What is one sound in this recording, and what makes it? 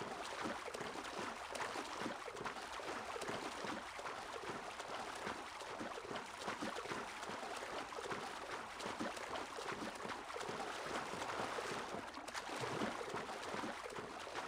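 Water splashes steadily as a swimmer strokes through a river.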